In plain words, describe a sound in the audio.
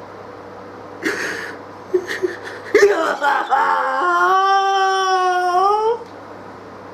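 A man sobs and wails loudly close to a microphone.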